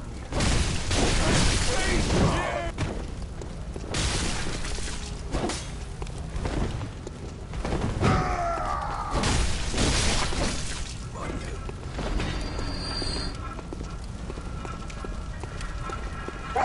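Blades swing and strike in a fight, with heavy whooshes and thuds.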